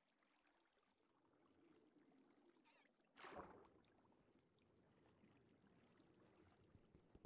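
Water swirls with a muffled underwater rumble.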